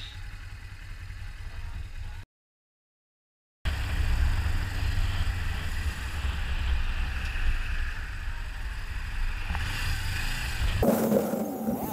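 Wind rumbles and buffets loudly past a moving motorcycle.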